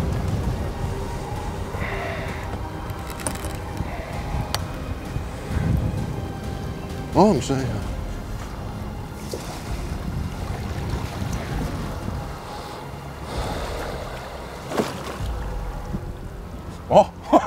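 Small waves lap against a boat.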